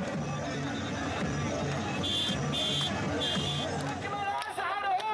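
A crowd chants rhythmically outdoors.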